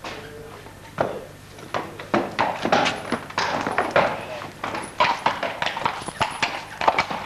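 Horse hooves clop and clatter on a hard floor.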